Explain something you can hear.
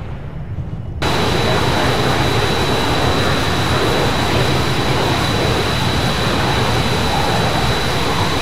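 A jet engine roars loudly and steadily.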